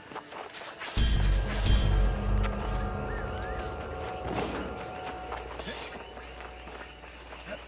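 A magical spell bursts with a deep rumbling whoosh.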